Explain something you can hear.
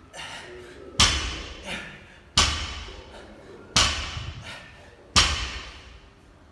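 A loaded barbell with bumper plates thuds on a rubber floor in deadlifts.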